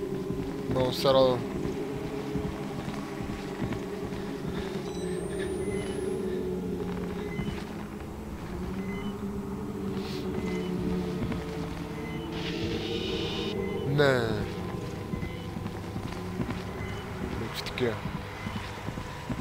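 A young man talks into a nearby microphone, calmly and at times with sudden exclamations.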